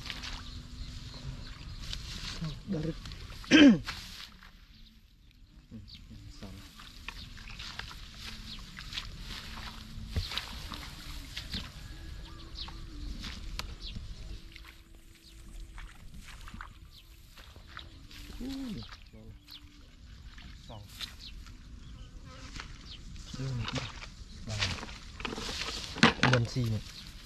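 A man speaks calmly close by.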